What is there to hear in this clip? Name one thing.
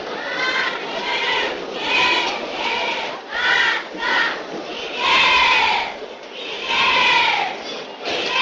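A large crowd cheers loudly in repeated rhythmic bursts.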